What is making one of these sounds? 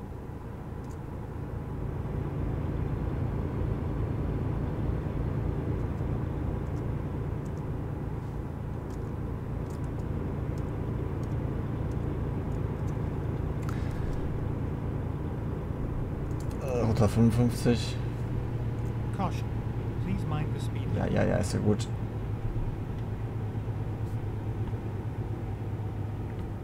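A truck engine hums steadily while driving on a highway.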